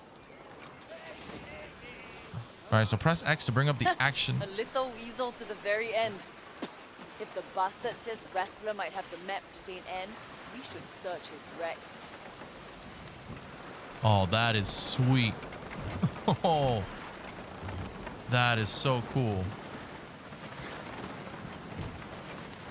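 Waves wash and splash against a wooden boat's hull.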